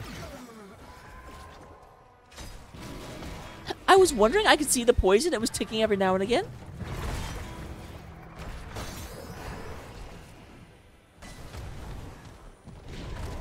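Magic spells and weapons clash in a fantasy battle.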